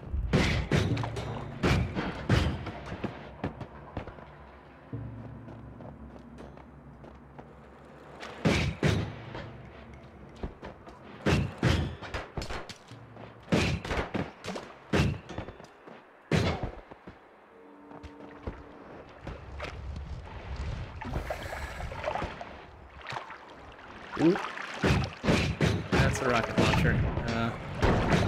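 Spells burst and crackle in quick bangs.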